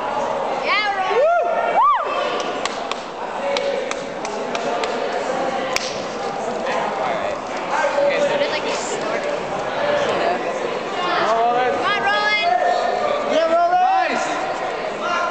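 A crowd of young people cheers and whoops loudly in a large echoing hall.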